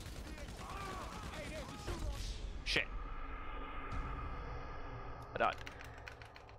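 A car explodes with a loud boom.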